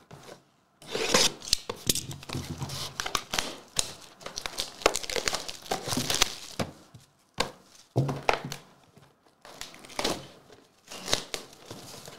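Plastic wrapping crinkles and rustles as cardboard boxes are handled.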